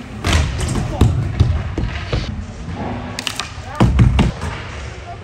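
A skateboard deck knocks sharply on a hard floor.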